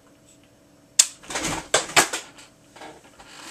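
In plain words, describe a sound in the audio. Plastic parts click and knock as a man handles them.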